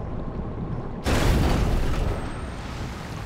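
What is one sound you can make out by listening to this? Water splashes and roars as a vehicle bursts from the surface.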